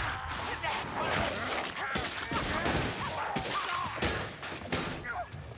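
Rat creatures screech and squeal.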